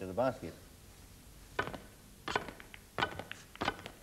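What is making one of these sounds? Snooker balls click against each other as a cue pushes them.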